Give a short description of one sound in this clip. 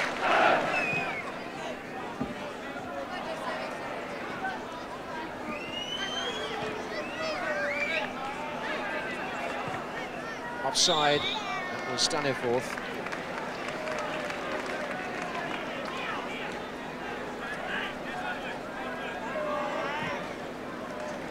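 A large crowd chants and murmurs outdoors in a stadium.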